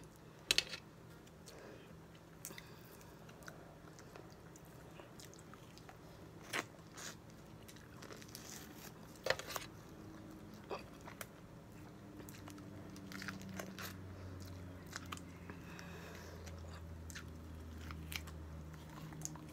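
A woman chews and smacks her lips close by.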